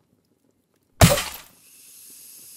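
A loud burst of static crackles from broken monitors.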